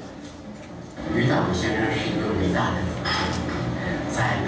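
A young man speaks into a microphone through loudspeakers in an echoing room.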